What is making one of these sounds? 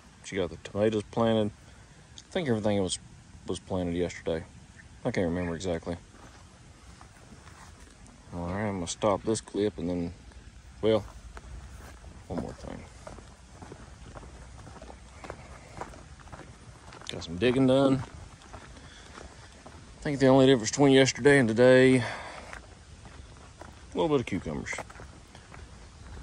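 A man talks calmly close by, pausing often.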